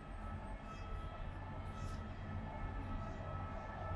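A metro train rumbles across a bridge in the distance.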